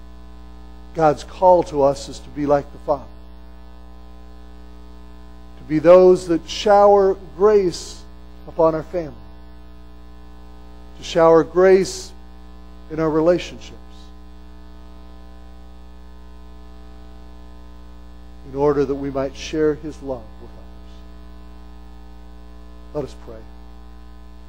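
A middle-aged man speaks with animation through a small microphone, in bursts with pauses, in an echoing hall.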